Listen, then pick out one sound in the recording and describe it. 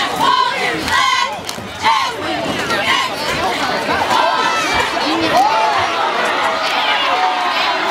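A crowd of spectators cheers and shouts excitedly outdoors.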